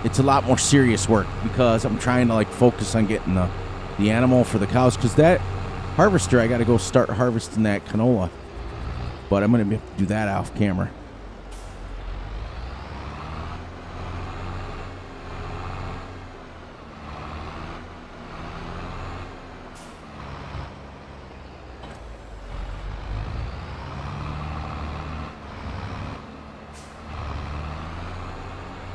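A tractor engine drones steadily, its pitch rising and falling as it drives.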